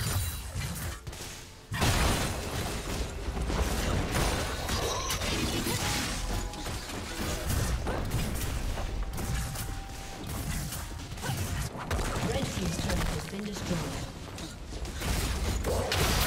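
Game spell effects crackle and blast in a busy battle.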